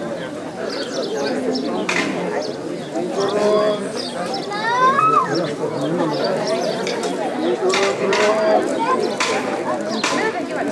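A crowd of men and women chatters close by, outdoors.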